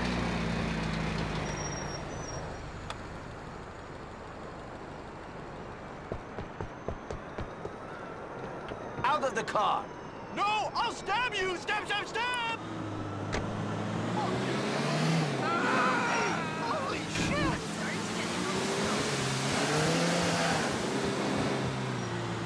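A car engine hums as a car drives.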